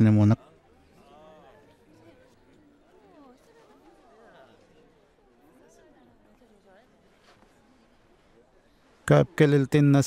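A crowd of men and women murmurs softly in the background.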